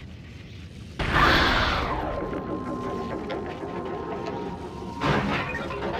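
A big explosion booms and rumbles away.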